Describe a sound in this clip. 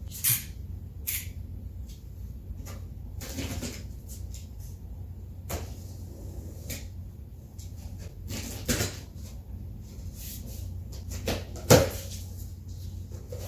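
A knife slices through packing tape with scraping, tearing noises.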